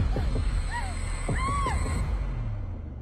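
A young woman cries out in fear close by.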